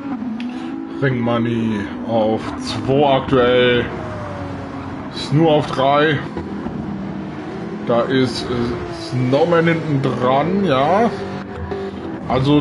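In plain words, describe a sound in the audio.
Several race car engines scream loudly as cars pass close by.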